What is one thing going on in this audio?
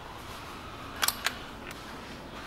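A metal engine cover clunks as it is lifted and set down.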